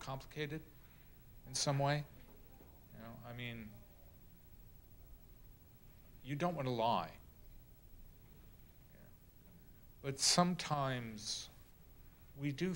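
A middle-aged man speaks slowly and deliberately into a microphone, with long pauses.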